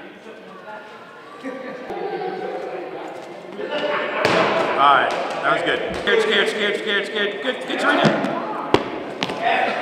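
A ball bounces on a hard floor in a large echoing hall.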